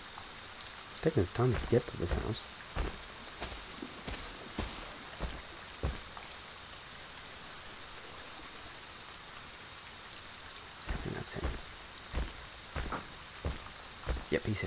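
Heavy footsteps thud on the ground.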